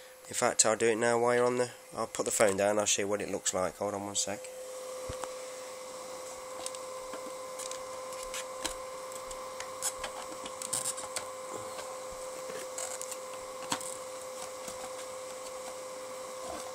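An electrical device hums steadily.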